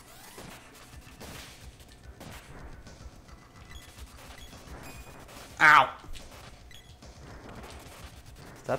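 Short video game hit sounds land as weapons strike monsters.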